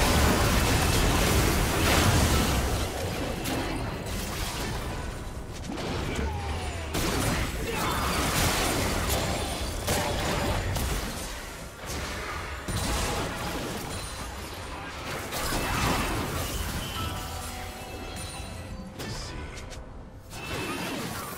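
Magic spells burst and clash in crackling, whooshing blasts during a fast fight.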